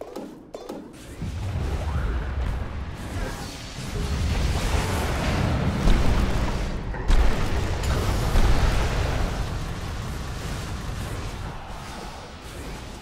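Spell impacts burst and crackle in rapid succession.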